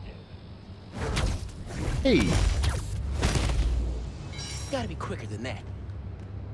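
Game sound effects whoosh and thud.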